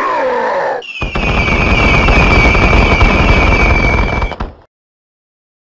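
A burst of crackling energy flares up.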